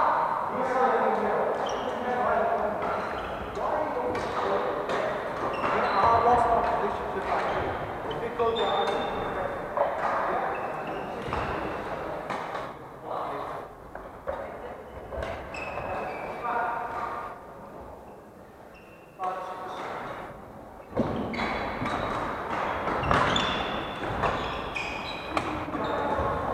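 Men talk and call out in a large echoing hall.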